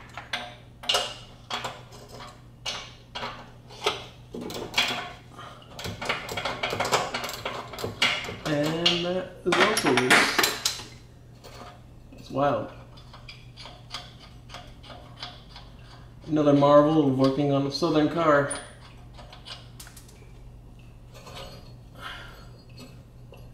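Metal tools clink and ratchet against a car's underside.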